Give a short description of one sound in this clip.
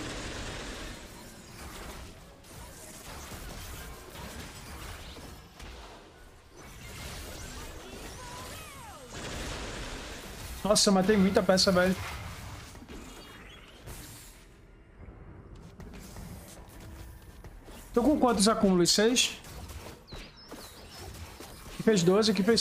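Fantasy fighters clash with bursts of magic and hits.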